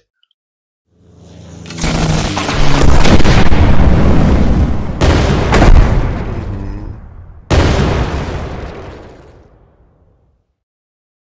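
An explosion booms and rumbles slowly away.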